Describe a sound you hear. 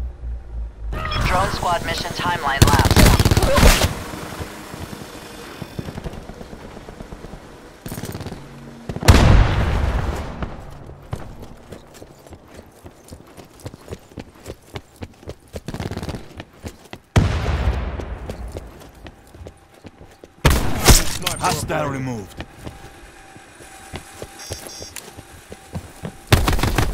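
Loud gunshots boom and echo in bursts.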